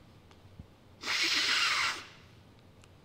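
A man sniffs hard.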